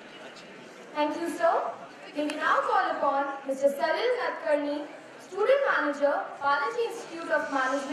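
A young girl speaks through a loudspeaker in a large hall.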